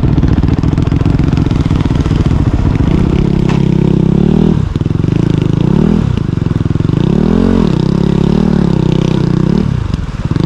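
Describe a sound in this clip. Water splashes under motorcycle tyres.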